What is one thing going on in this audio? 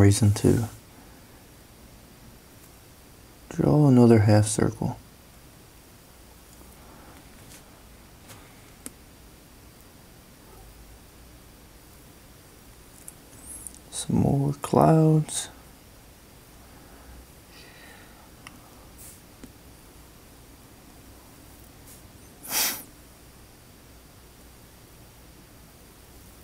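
A marker squeaks and scratches softly on paper.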